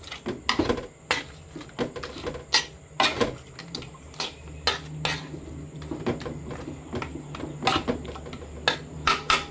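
A spoon scrapes and clacks against a metal pan.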